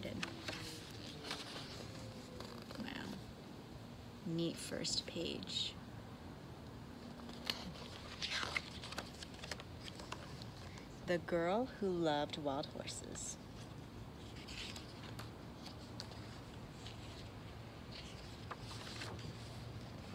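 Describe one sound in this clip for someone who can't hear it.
Paper pages rustle as a book's pages turn.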